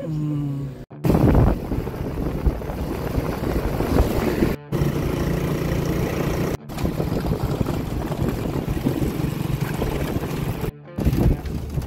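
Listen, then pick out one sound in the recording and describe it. A motorbike engine rumbles steadily on the road.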